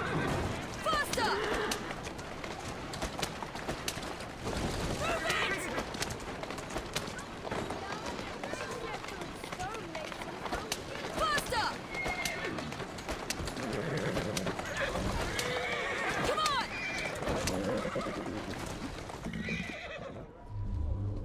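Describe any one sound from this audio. Horse hooves clatter quickly on cobblestones.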